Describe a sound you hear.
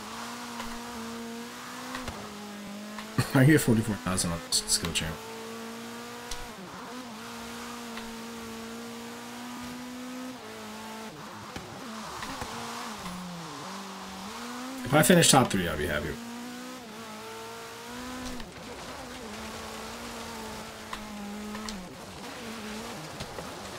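A car engine roars steadily, rising and falling in pitch as the car speeds up and slows.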